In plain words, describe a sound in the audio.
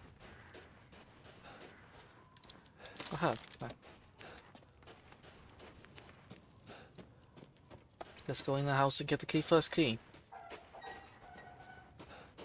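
Footsteps crunch slowly through snow.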